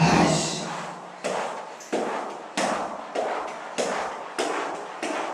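A flat mop swishes rhythmically across a wooden floor in an echoing empty room.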